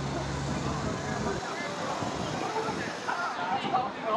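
A scooter motor whirs past close by.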